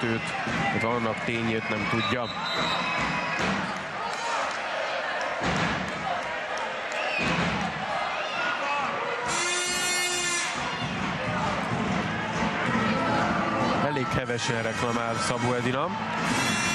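A large crowd cheers and chants loudly in an echoing hall.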